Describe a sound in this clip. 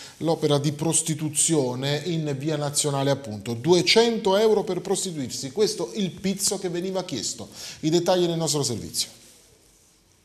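A man speaks clearly and steadily into a close microphone.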